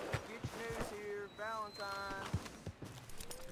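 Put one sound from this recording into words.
A horse whinnies.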